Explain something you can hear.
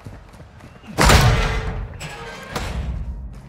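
A metal door bangs open loudly.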